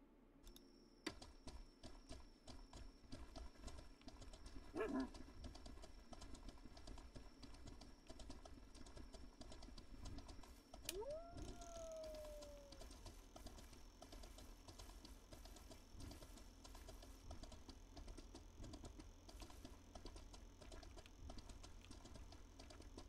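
A horse's hooves clop steadily on soft ground.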